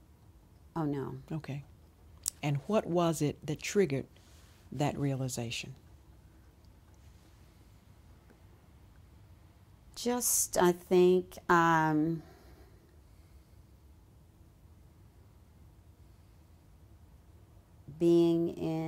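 An older woman speaks calmly and close to a microphone, in short phrases with pauses.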